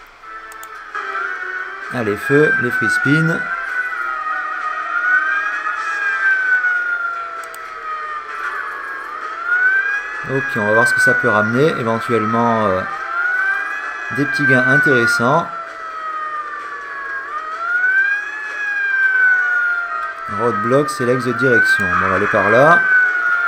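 Slot machine music plays with rising and falling electronic tones.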